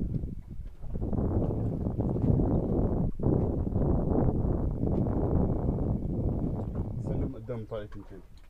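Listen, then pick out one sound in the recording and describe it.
Wind blows across the microphone outdoors on open water.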